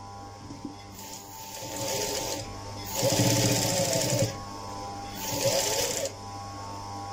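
A sewing machine whirs and stitches in short, fast bursts.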